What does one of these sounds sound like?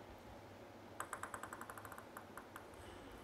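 A table tennis ball bounces repeatedly on a table.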